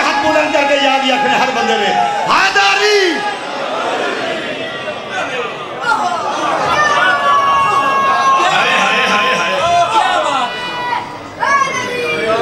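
A crowd of men chant along and shout.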